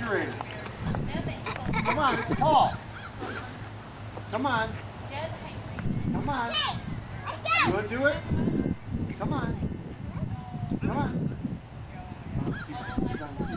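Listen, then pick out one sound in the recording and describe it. Young children shout and squeal excitedly nearby.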